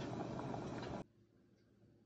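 Water bubbles at a rolling boil in a pan.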